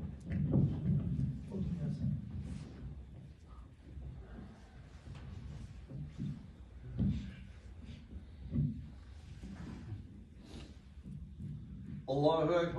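A man speaks calmly in a reverberant room.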